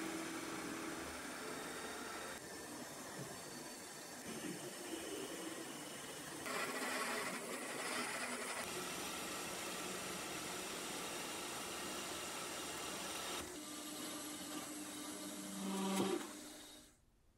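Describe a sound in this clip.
A cutting tool scrapes and whines against turning metal.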